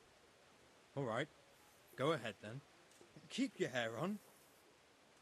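A man answers calmly.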